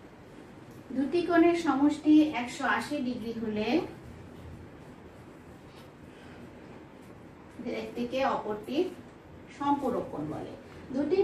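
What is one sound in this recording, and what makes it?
A woman speaks calmly and clearly, close by, as if teaching.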